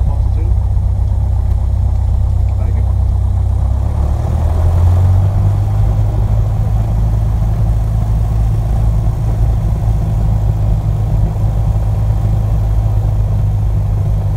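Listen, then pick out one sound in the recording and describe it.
A small plane's propeller engine drones loudly and steadily, rising in pitch after a few seconds.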